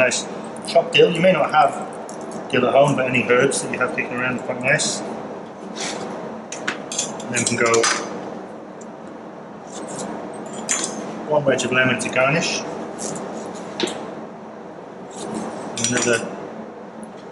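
A man talks calmly into a microphone nearby.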